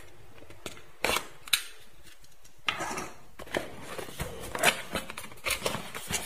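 A cardboard box rustles and scrapes as hands handle and open it.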